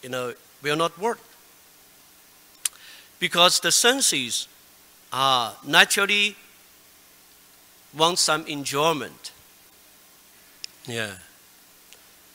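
A man chants in short phrases into a microphone, with pauses between.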